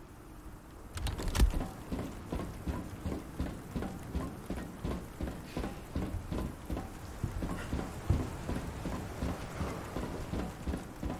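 Footsteps clang on metal stairs at a steady pace.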